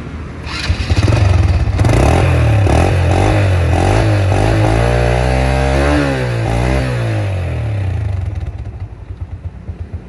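A motorcycle engine idles with a low, uneven rumble.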